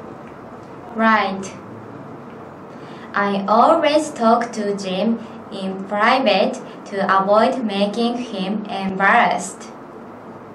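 A second young woman answers calmly and clearly, close to a microphone.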